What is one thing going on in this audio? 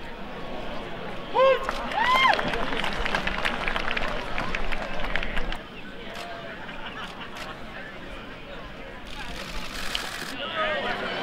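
A large crowd murmurs and chatters steadily outdoors.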